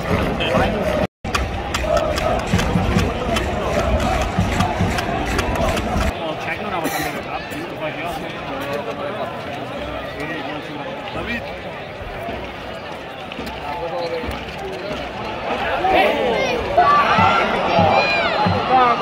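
A large football crowd murmurs and calls out in an open-air stadium.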